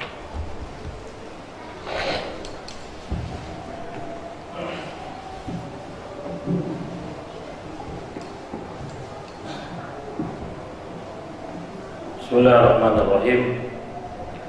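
A man speaks calmly into a microphone, with pauses, in a room that echoes slightly.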